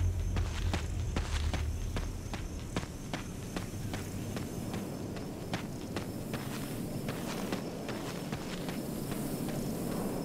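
Footsteps crunch quickly on leaves and dirt.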